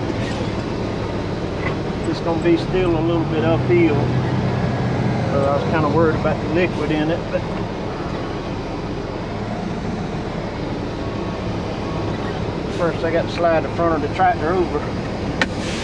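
A diesel engine idles with a steady low rumble.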